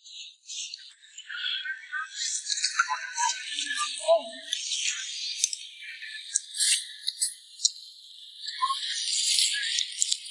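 A man slurps soup noisily from a spoon.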